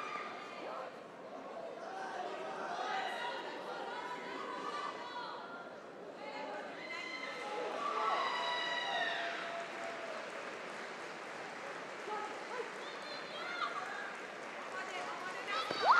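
Young women shout sharply as they spar.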